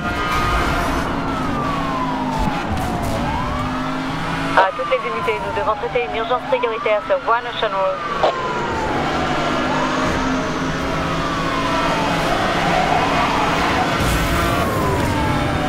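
A police siren wails up and down steadily.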